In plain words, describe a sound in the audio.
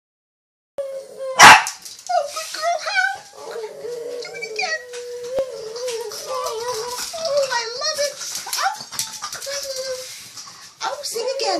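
A dog howls and whines up close in a long wavering cry.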